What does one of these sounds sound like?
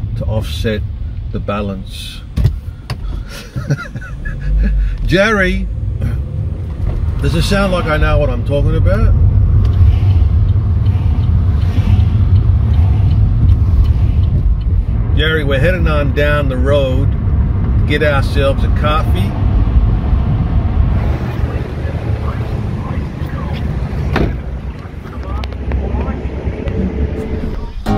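A car engine rumbles low and steadily.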